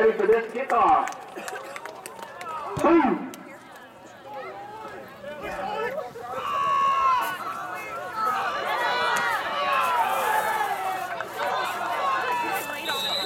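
A crowd outdoors cheers and shouts.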